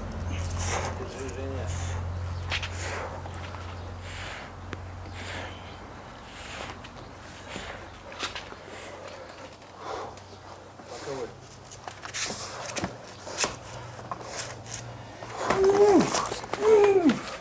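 A man talks and laughs at close range.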